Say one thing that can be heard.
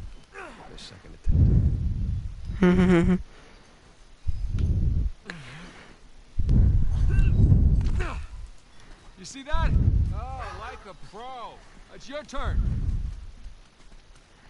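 Heavy thuds sound as a climber grabs and pulls up on rock.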